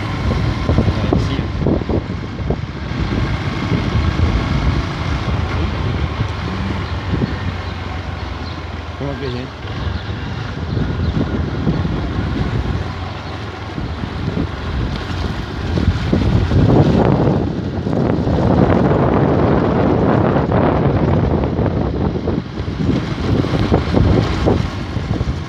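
Wind rushes past the rider outdoors.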